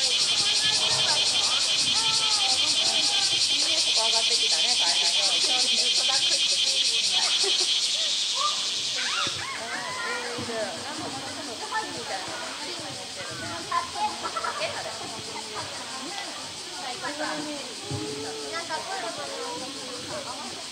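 Water splashes and laps as a large animal swims.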